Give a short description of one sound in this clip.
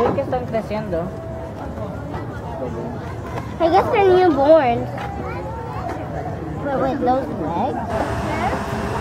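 Children and adults chatter and call out nearby.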